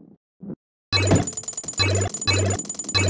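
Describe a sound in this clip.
Coins chime brightly as they are collected.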